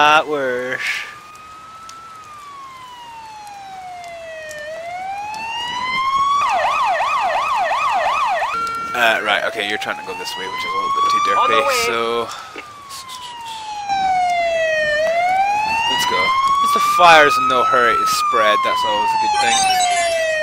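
A fire engine siren wails, rising and falling, at times switching to a fast yelp.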